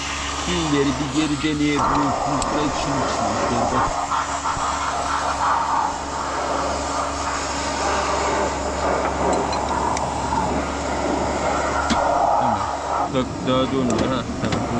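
A ratchet wrench clicks against metal.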